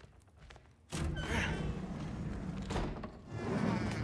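A heavy wooden door swings open.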